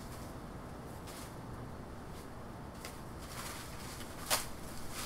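Leaves and branches rustle and snap as a man handles plants nearby.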